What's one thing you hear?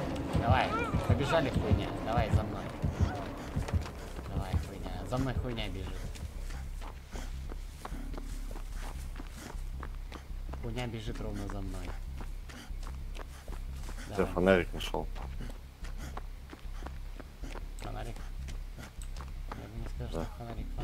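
Footsteps run quickly over soft ground.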